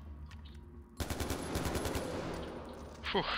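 A rifle fires with a loud crack.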